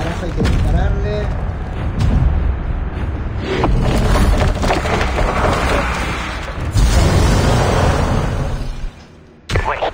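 A huge creature stomps with heavy, deep thuds.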